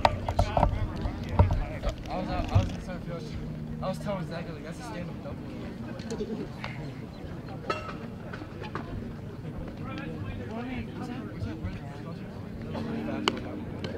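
Young men chatter and call out nearby outdoors.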